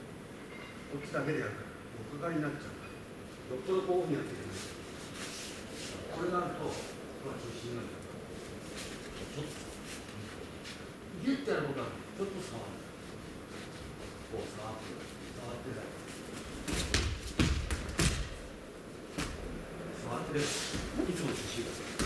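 An elderly man speaks calmly, explaining, in a large echoing hall.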